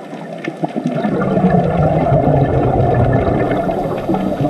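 Air bubbles from a diver's breathing gurgle and rumble underwater.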